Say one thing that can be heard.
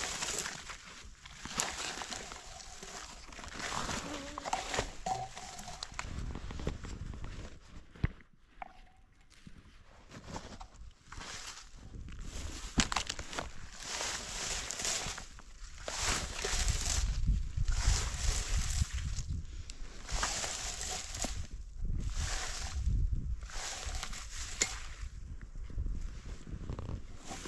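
A berry picker rakes and rustles through low bushes in repeated strokes.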